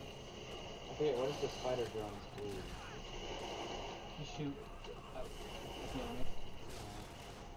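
A young man speaks casually close to a microphone.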